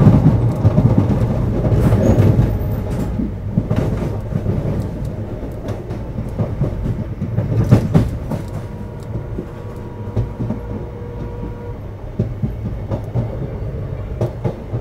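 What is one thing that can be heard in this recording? A train rumbles along the tracks, its wheels clattering over rail joints.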